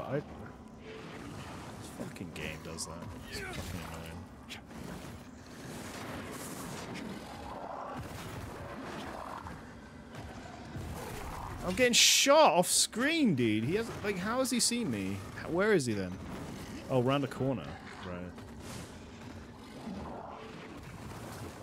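A sword swishes and clashes in a fight.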